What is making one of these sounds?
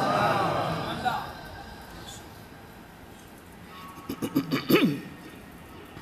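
A man chants melodiously into a microphone.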